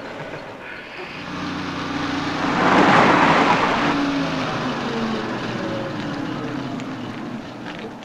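A car engine rumbles as a car drives past.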